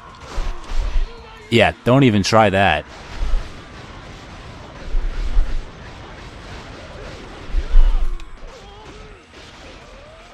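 Swords slash and clang in a fast fight.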